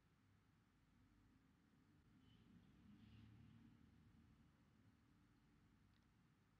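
A bee buzzes softly.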